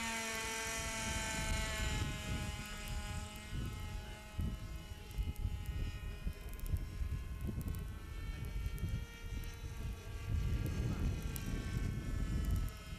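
A small model helicopter engine whines high overhead, its pitch shifting as it flies.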